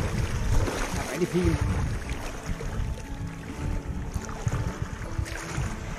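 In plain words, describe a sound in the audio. Water splashes around a man wading.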